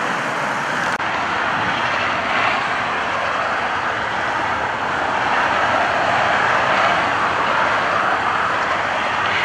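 Distant traffic hums steadily on a highway.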